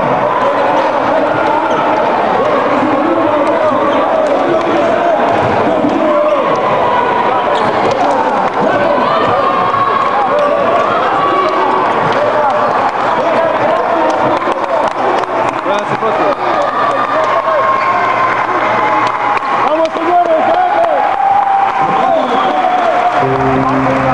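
Young men shout and cheer loudly together in a large echoing hall.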